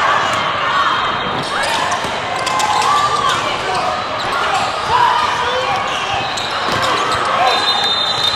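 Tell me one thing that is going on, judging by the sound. A crowd of spectators cheers and chatters in a large echoing hall.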